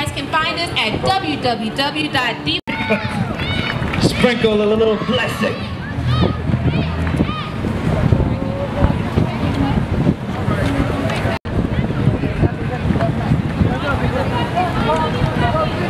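A large crowd of men and women chatter and call out nearby, outdoors.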